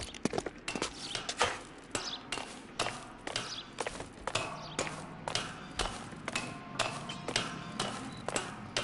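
Hands and feet clank on a metal ladder in a steady climbing rhythm.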